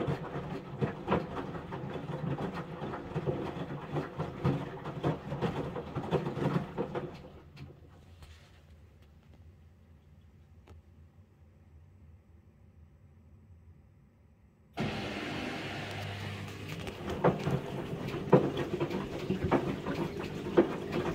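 Wet laundry tumbles and thumps inside a front-loading washing machine drum.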